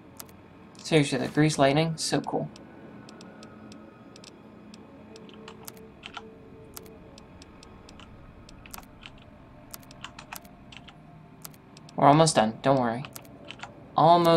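Soft interface clicks tick repeatedly as items are scrolled through.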